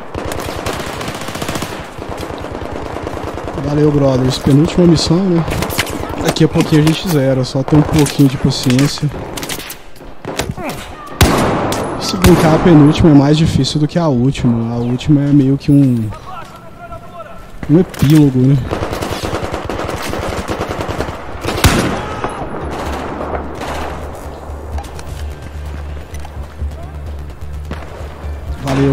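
Gunshots crack sharply.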